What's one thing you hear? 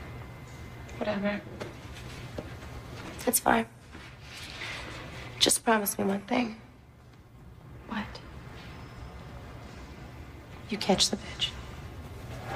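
Another young woman answers sharply nearby.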